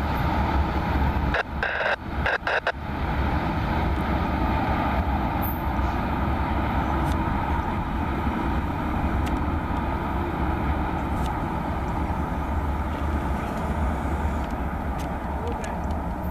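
A freight train rumbles away along the tracks.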